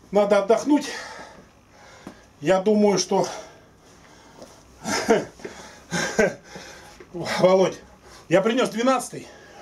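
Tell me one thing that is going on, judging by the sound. An older man speaks with animation close by.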